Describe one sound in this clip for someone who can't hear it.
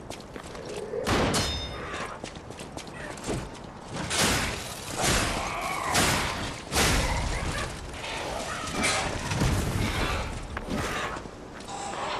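Heavy weapons swing and strike loudly in a fight.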